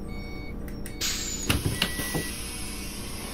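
A bus door opens with a hiss of air.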